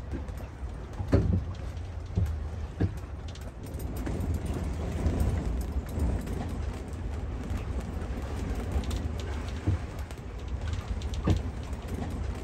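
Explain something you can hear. Choppy waves slap and thud against a boat's hull.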